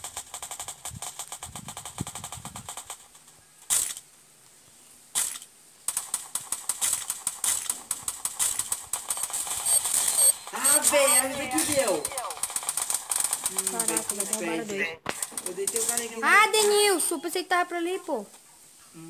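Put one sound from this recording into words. Rifle shots crack in rapid bursts.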